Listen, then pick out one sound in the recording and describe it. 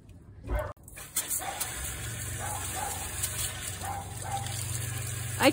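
Water gushes and splashes onto the ground.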